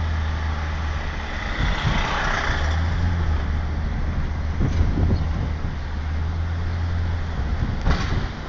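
A large bus engine rumbles close by.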